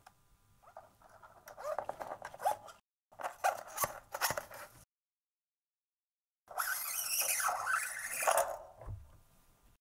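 A guitar string scrapes and rattles as it is threaded through the body.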